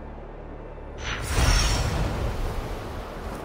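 A loud whoosh of wings bursts up and fades.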